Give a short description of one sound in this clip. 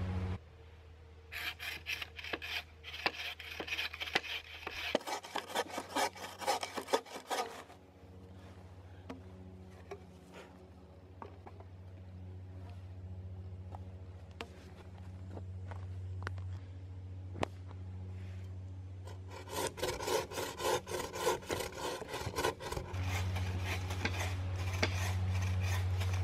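A bow saw cuts through wood with quick, rhythmic strokes.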